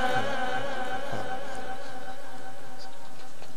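A man chants a long, drawn-out melodic phrase through a microphone in an echoing hall.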